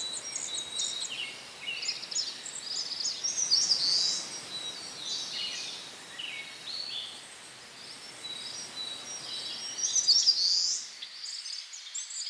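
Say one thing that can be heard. Water laps gently.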